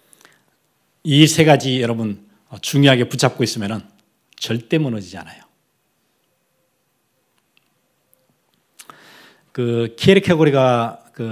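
A middle-aged man speaks with emphasis into a microphone, in short bursts with pauses.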